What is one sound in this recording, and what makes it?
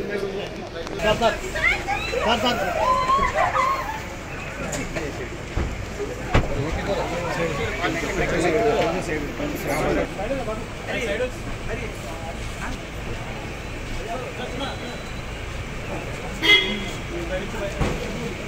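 A crowd of men talk and shout excitedly close by.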